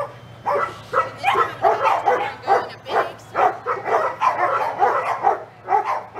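A woman talks with animation close by, outdoors.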